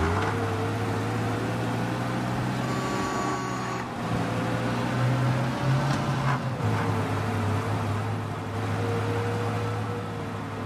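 An old car engine hums steadily as the car drives along a street.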